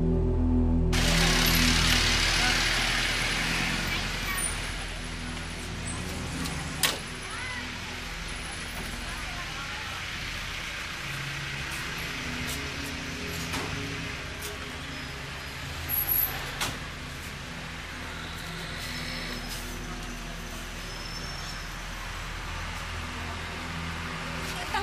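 Traffic hums steadily outdoors along a street.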